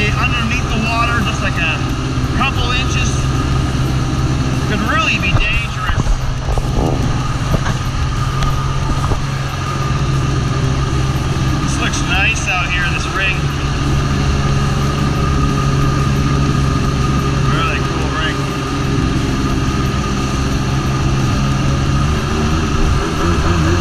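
A jet ski engine drones steadily up close.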